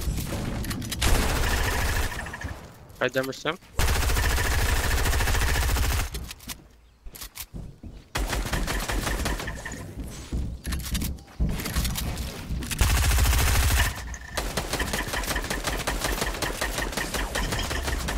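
Wooden building pieces clack into place in a rapid, steady rhythm.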